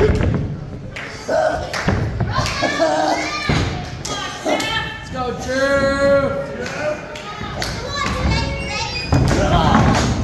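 A crowd of men and women shouts and cheers in an echoing hall.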